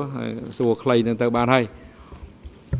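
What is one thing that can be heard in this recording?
A middle-aged man speaks slowly into a microphone.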